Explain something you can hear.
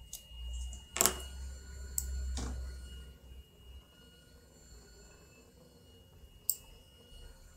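A metal latch clicks sharply into place.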